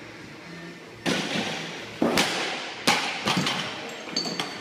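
Heavy barbell weights crash onto the floor and bounce with a clatter in an echoing room.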